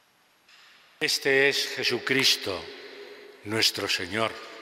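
An elderly man chants loudly through a microphone, echoing in a large hall.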